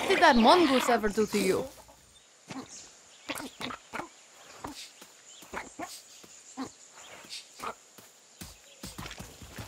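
A rooster clucks nearby.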